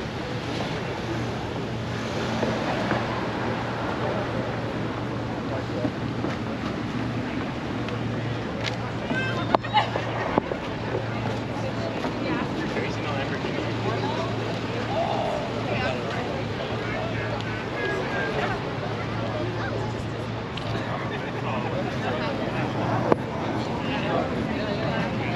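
A crowd of people chatter outdoors at a distance.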